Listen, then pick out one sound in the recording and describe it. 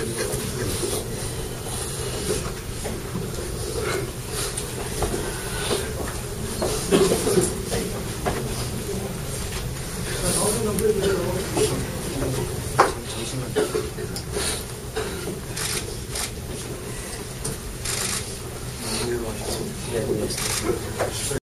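A crowd of men murmurs quietly in a room.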